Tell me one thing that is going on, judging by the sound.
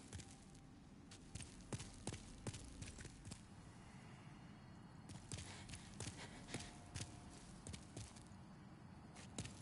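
Armoured footsteps thud on stone at a steady pace.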